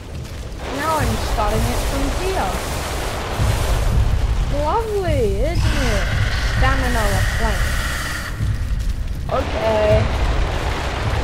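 A small dinosaur chirps and squeals in short rising and falling calls.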